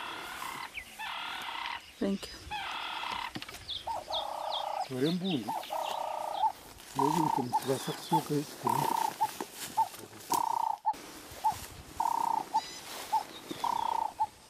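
Footsteps rustle through dry grass and brush.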